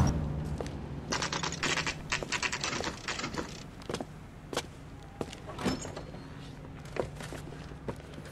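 Footsteps tap on a hard pavement.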